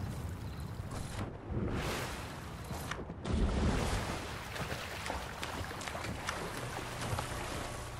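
Water splashes as a swimmer dives in and paddles.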